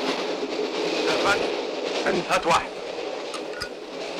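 Glass bottles clink on a tray.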